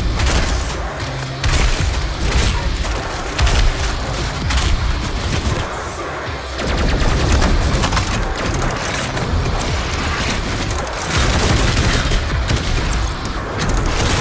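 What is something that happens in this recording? Heavy gunfire blasts in quick bursts.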